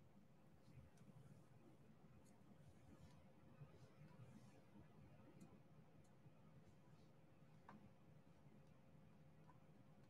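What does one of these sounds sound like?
A pen tool clicks and taps softly on small plastic beads.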